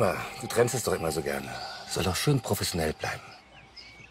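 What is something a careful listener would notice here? A man talks quietly up close.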